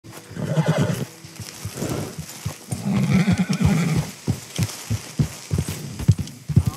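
A horse's hooves thud steadily on soft ground.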